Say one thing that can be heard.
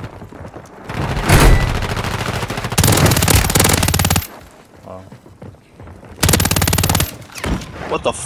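Rapid gunfire rattles in loud bursts.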